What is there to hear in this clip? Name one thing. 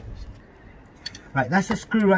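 A metal socket clicks onto a bolt.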